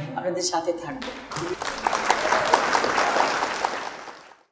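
A crowd claps and cheers in a large room.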